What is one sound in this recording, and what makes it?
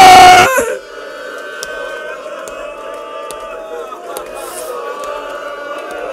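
A man speaks through a microphone in a slow, drawn-out, chanting voice.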